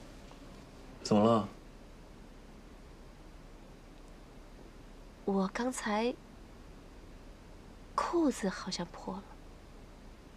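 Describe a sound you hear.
A young man speaks briefly in short phrases, close by.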